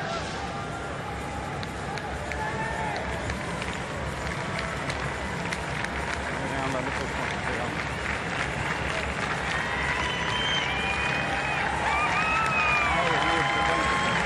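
A large crowd murmurs and cheers in an open stadium.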